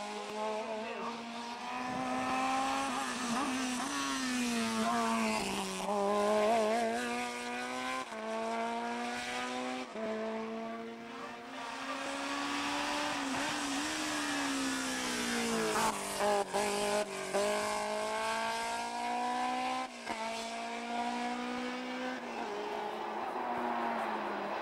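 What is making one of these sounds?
Racing car engines roar loudly as the cars accelerate uphill.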